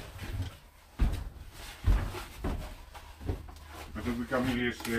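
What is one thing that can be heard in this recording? A wooden board knocks and bumps as it is carried.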